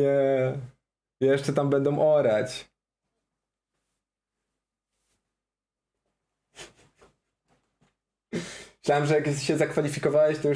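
A young man talks with animation close to a microphone, breaking off in pauses.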